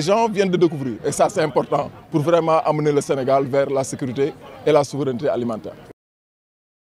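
A man speaks with animation into microphones close by.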